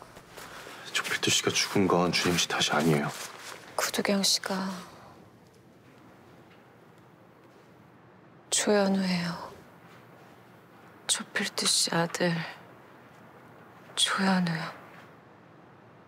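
A young man speaks in a low, quiet voice, close by.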